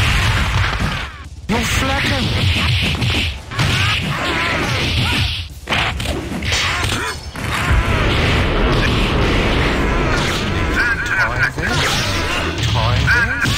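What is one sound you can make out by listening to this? Punches and kicks land with sharp thuds and smacks.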